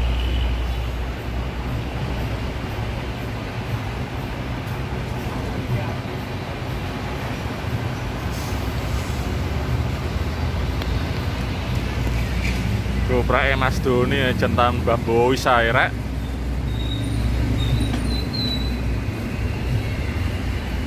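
A large truck engine idles with a deep rumble.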